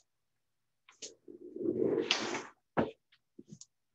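Clothing rustles and bumps loudly against a nearby microphone.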